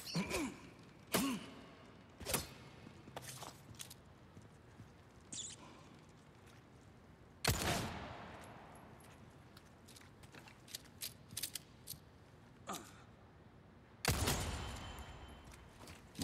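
Footsteps crunch over gravel and debris.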